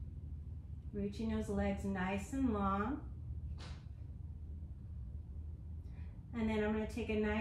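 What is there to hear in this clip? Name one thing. A woman speaks calmly and close by.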